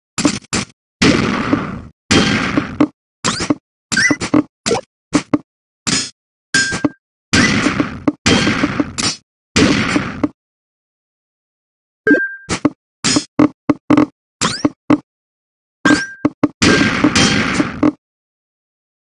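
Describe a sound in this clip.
Rows clear with a bursting electronic sound.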